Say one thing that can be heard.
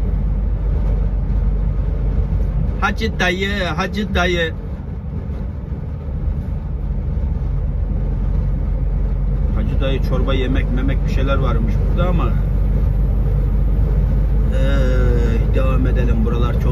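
Tyres rumble steadily on a paved road.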